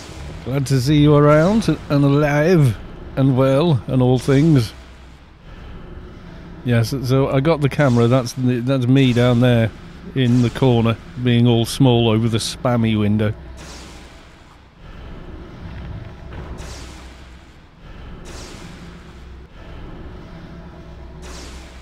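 Electric spell effects crackle and zap.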